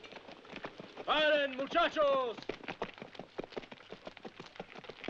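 Horse hooves clop on dry ground.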